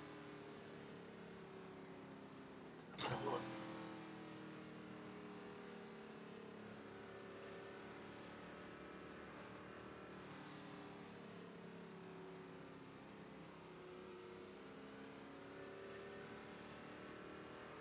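A race car engine roars steadily at speed.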